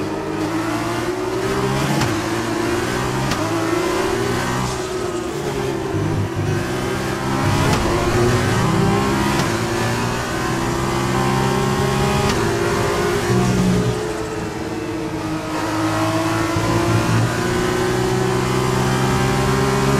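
A racing car engine screams at high revs, rising and falling in pitch as gears shift.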